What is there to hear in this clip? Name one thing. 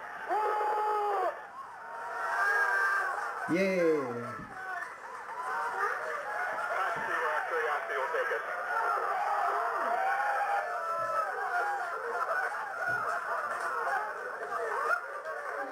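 A crowd of men and women cheers and whoops loudly, heard through a small loudspeaker.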